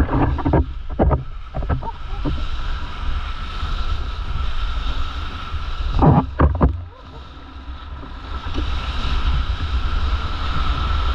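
A wave breaks into white foam with a rushing roar.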